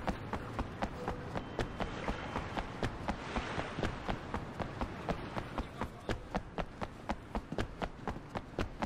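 Quick footsteps run on hard pavement.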